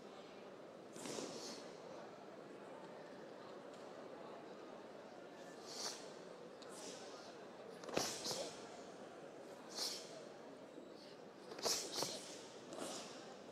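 Stiff cloth snaps sharply with quick arm strikes, again and again.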